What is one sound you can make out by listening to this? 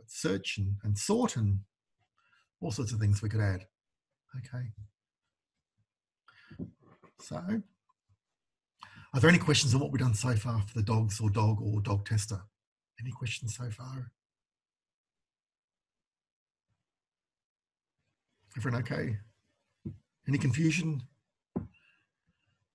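A man speaks calmly and close to a microphone, in bursts with pauses.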